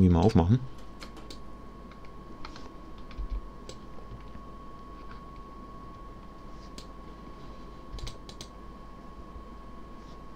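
An electric train rolls slowly along the tracks.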